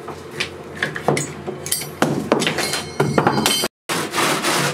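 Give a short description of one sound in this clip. A hand saw rasps back and forth through foam.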